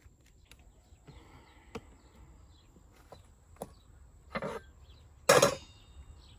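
Vegetables and metal bowls knock softly on a wooden table.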